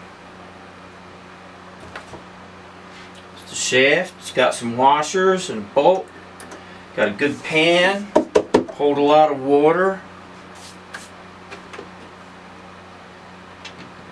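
Plastic parts click and knock as a man fits them together.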